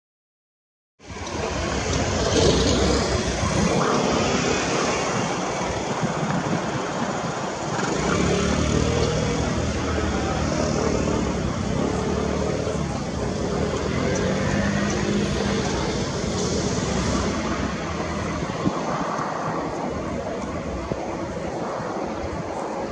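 Jet engines roar loudly as an airliner taxis nearby.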